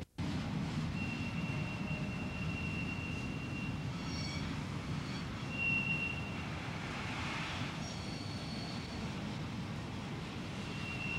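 Train wheels squeal faintly on the rails.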